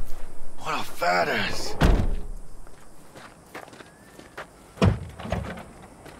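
A car trunk lid slams shut.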